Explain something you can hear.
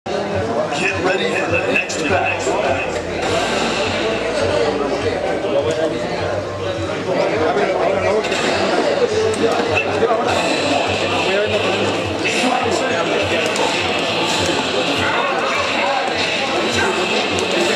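Game music plays loudly through a television speaker.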